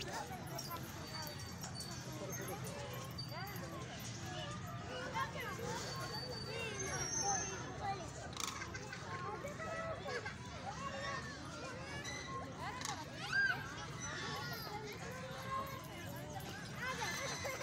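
A crowd of children and adults chatters and calls out in the distance, outdoors.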